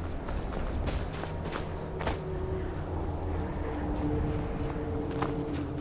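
Footsteps crunch on snow and rock.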